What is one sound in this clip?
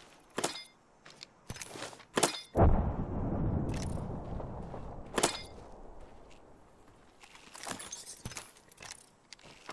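Short clicks and clatters sound as items are picked up in a video game.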